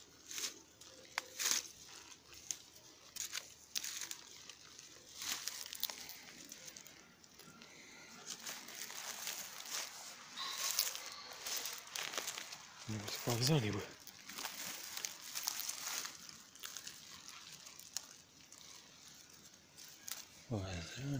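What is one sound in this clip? Dry grass and twigs crunch and rustle underfoot.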